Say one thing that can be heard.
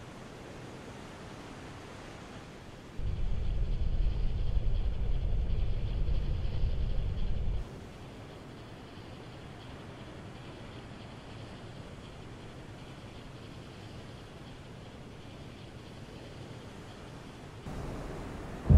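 Water rushes along the hull of a steamship cutting through the sea.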